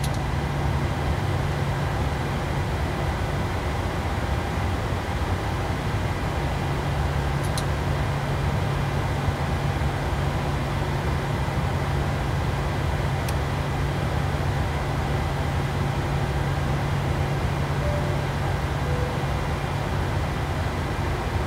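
A steady low hum of aircraft machinery fills a cockpit.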